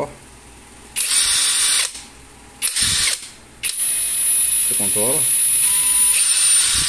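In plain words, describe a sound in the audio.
A cordless drill whirs in short high-pitched bursts, then runs steadily.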